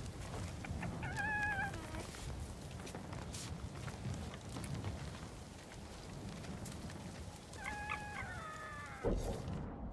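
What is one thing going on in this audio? A fox yelps softly in short high cries.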